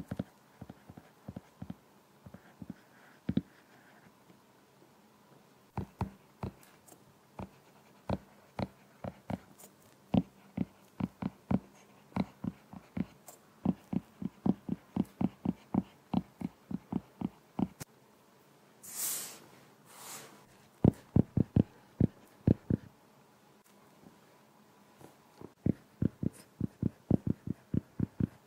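A stylus taps and clicks quickly on a glass tablet.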